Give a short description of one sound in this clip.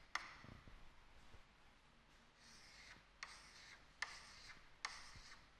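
Chalk taps and scratches against a blackboard in short strokes.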